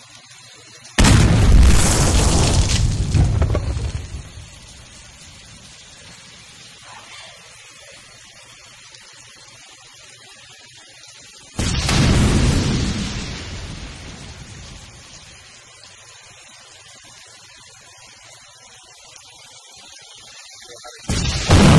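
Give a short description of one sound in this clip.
Water sprays down like fine rain in loud hissing bursts.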